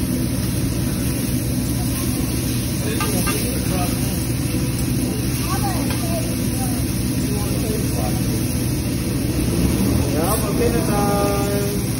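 A metal spatula scrapes and taps on a griddle.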